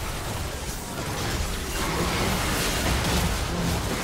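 A tower crumbles with a heavy crash.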